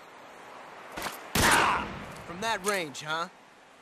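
Pistol shots ring out sharply.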